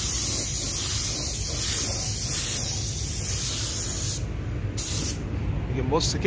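A paint spray gun hisses steadily, then stops.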